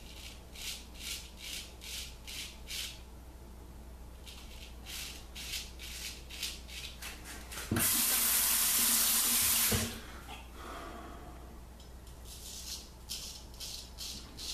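A razor scrapes across stubble in short, quick strokes.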